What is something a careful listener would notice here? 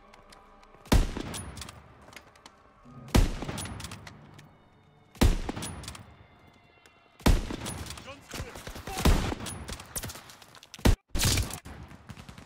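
A rifle fires loud, sharp shots one after another.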